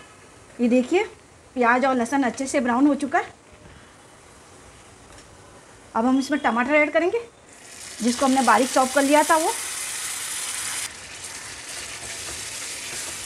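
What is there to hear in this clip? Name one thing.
A metal spatula scrapes against a pan while stirring.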